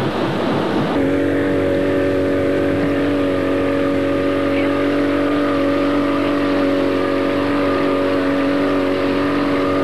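An open motorboat's engine drones as the boat cruises over the sea.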